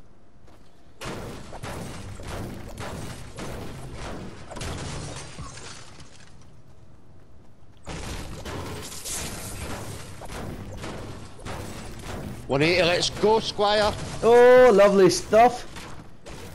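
A pickaxe strikes metal and wood with repeated sharp thuds.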